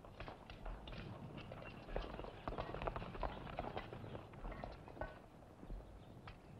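Horse hooves thud on dirt.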